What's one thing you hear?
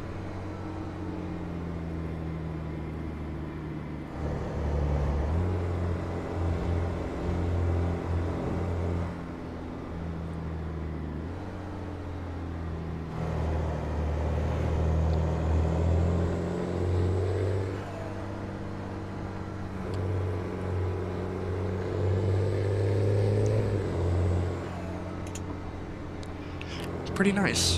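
A pickup truck engine drones steadily, swelling and easing as it speeds up and slows.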